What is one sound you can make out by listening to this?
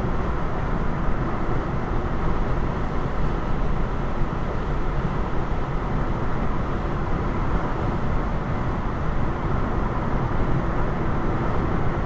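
Road noise rumbles steadily inside a car driving on a highway.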